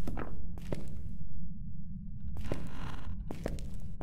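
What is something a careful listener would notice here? A stall door swings open.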